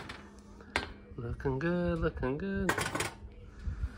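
A glass pie dish knocks down onto a stovetop.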